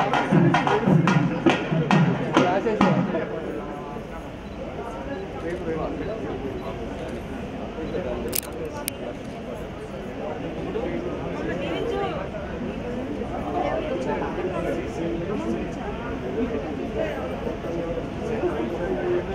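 A crowd of men and women chatters throughout.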